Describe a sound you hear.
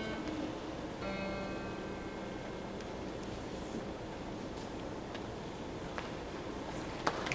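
A boy plays an acoustic guitar, strumming chords close by.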